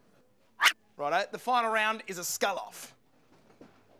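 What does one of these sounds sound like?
A man speaks in reply close by.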